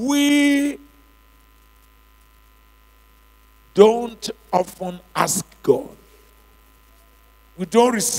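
A man preaches with emphasis into a microphone over loudspeakers in a large hall.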